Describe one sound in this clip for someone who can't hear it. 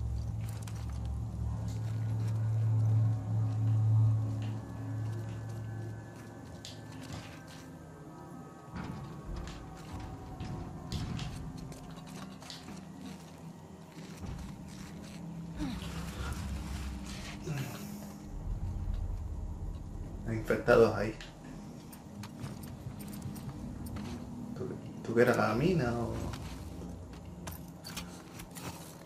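Footsteps shuffle softly on gravel.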